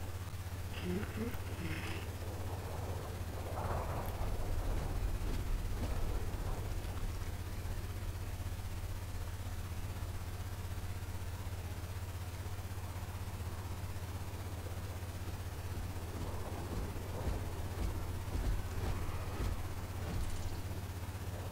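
A young man speaks quietly into a close microphone.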